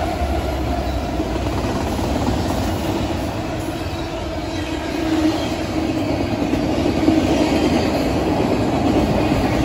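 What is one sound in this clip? The wheels of double-stack container cars clatter and squeal on steel rails.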